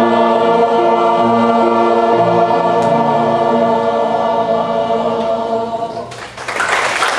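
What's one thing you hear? An elderly choir of women and men sings together in harmony.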